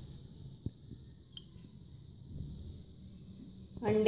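Raw eggs slip from a dish into a bowl with a soft splash.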